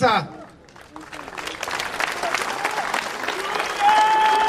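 A crowd cheers and applauds outdoors.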